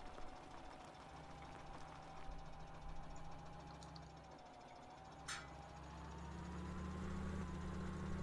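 A tractor engine hums steadily and revs up louder toward the end.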